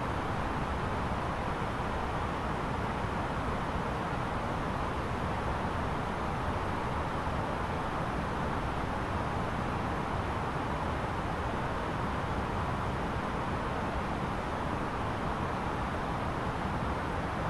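Jet engines and rushing air roar steadily.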